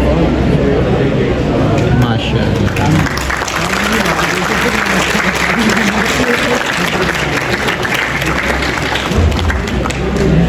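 A crowd of people cheers and applauds in a large echoing hall.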